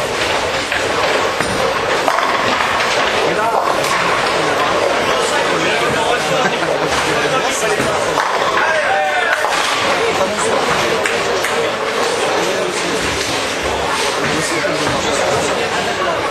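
A bowling ball rolls down a wooden lane.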